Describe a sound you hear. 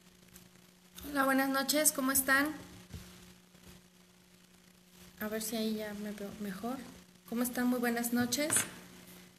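A woman speaks calmly, close to the microphone, in short phrases with pauses.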